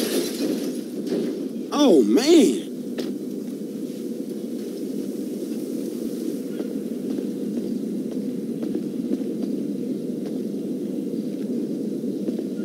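A jet aircraft's engines hum steadily nearby.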